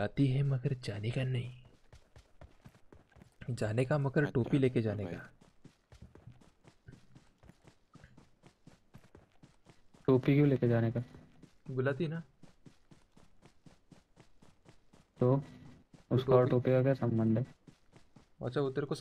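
Footsteps thud quickly and evenly on grass.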